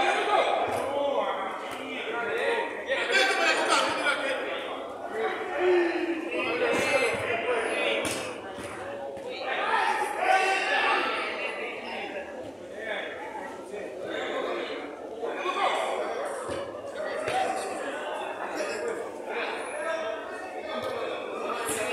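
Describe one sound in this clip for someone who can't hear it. Men shout and call out to each other across a playing field.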